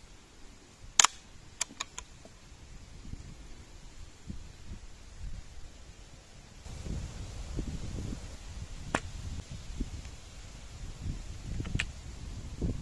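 Metal parts of an air rifle click sharply.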